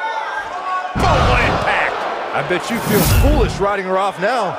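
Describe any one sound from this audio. A heavy body slams onto a ring mat with a thud.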